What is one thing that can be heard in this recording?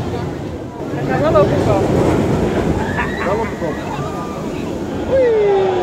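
A roller coaster train rumbles and clatters along a wooden track.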